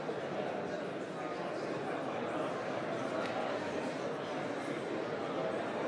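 A man and a woman talk softly with each other.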